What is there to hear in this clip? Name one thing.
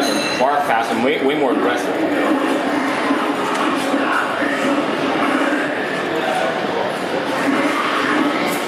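Fighting and clashing sound effects play from a loudspeaker.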